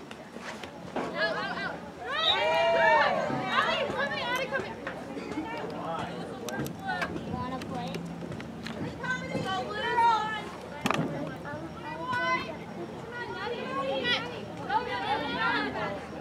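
Young women shout and call out across an open outdoor field.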